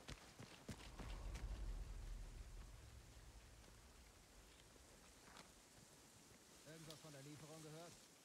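Tall grass rustles as someone moves slowly through it.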